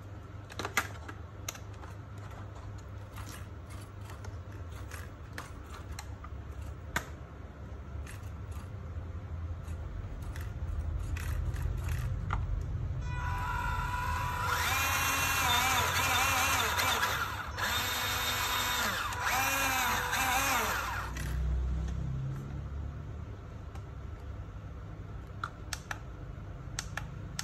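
Plastic toy parts click and knock as hands turn a toy truck over.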